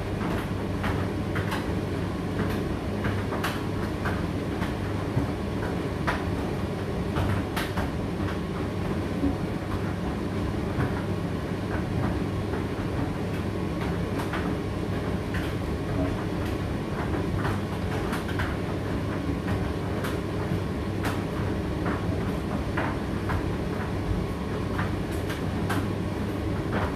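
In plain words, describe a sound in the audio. A condenser tumble dryer runs with a steady low hum.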